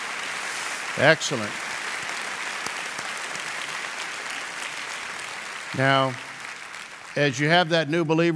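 A man speaks with animation into a microphone, heard through loudspeakers in a large hall.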